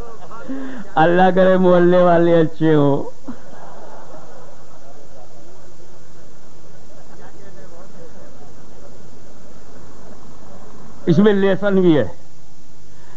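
An elderly man chants in a long, drawn-out singing voice through a microphone.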